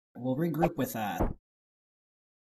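A man speaks briefly in a cartoonish voice.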